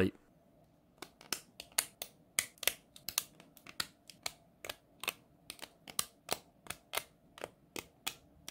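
Keyboard switches click and snap into a metal plate.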